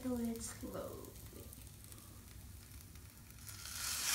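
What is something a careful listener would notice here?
A waffle iron lid clicks shut.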